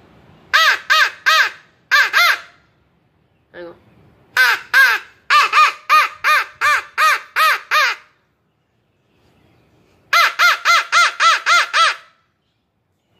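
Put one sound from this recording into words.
A young man blows a game call, making short, loud, high honking calls in quick bursts.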